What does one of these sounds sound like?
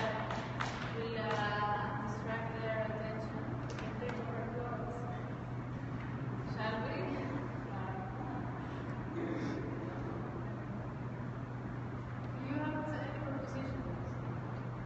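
Young people speak in a large, echoing room.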